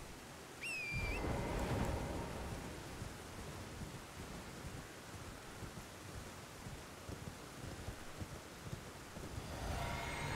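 Hooves thud as a horse gallops.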